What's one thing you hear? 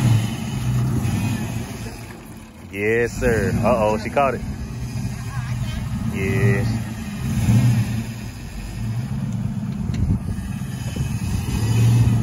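A car drives slowly away with a low rumble.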